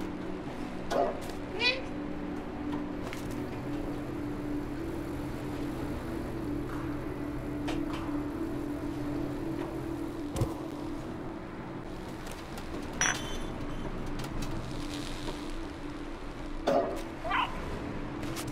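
A cat meows a few times.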